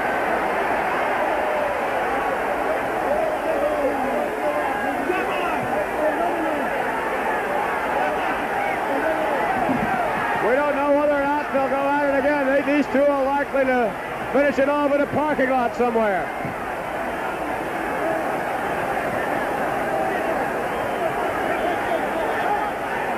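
A large crowd shouts and cheers in a big echoing hall.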